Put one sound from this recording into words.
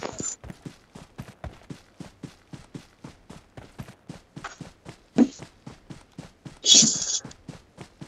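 Footsteps run quickly and evenly through grass.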